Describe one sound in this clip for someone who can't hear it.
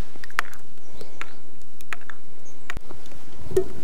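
A spoon clinks and scrapes against a ceramic bowl.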